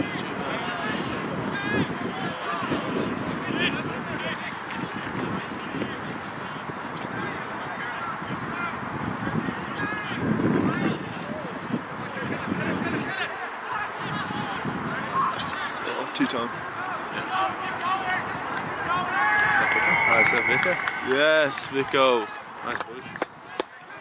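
Spectators nearby talk and call out outdoors.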